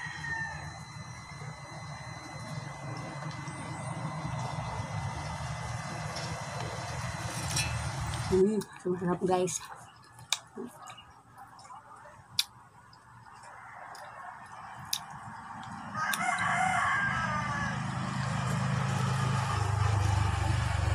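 A young woman chews and slurps juicy fruit close to the microphone.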